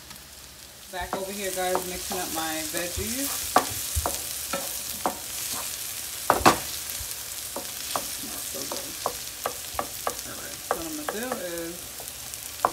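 Vegetables sizzle in a hot pan.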